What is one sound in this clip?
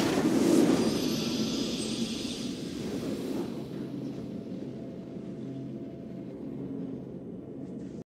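A triumphant game tune swells up and then fades.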